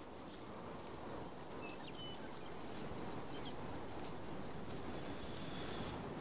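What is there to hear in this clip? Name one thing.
Leafy fronds rustle as they brush past.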